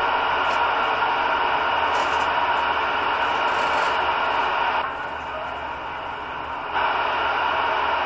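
Static hisses loudly from a radio receiver, briefly dropping quieter before returning.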